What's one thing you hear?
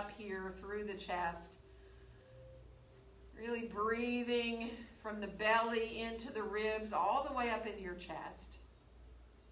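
A woman speaks calmly and slowly into a close microphone.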